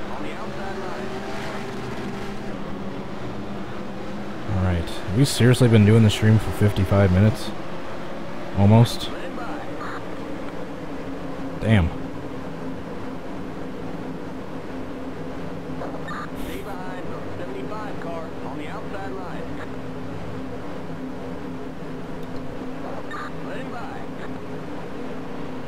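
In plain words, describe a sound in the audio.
Race car engines roar steadily.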